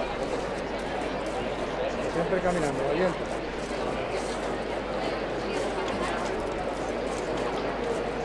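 A large crowd murmurs outdoors.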